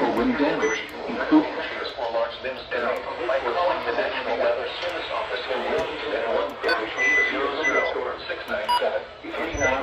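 Buttons click on a small radio.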